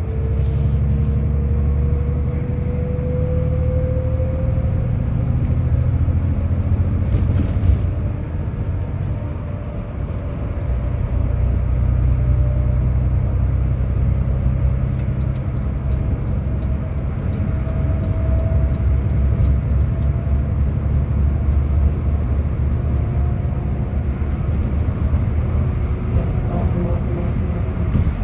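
A bus engine hums and rumbles steadily from inside the cabin.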